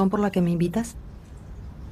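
A woman speaks softly nearby.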